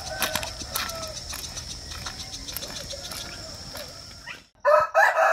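Footsteps crunch on a gravel road.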